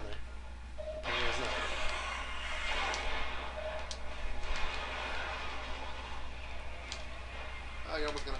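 Energy blasts whoosh and roar loudly.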